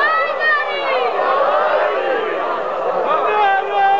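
A crowd of men chants loudly.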